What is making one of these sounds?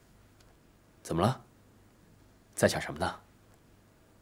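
A young man speaks softly and gently, close by.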